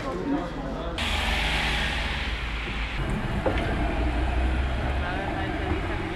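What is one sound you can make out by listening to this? A tram rolls past with a low rumble.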